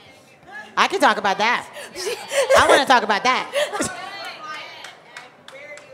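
Women laugh loudly together.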